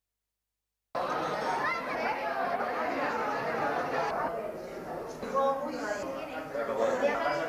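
A crowd of men and women chatter and talk over one another indoors.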